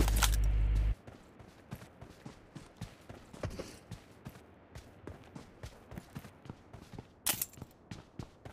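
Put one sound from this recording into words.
Footsteps patter quickly over the ground.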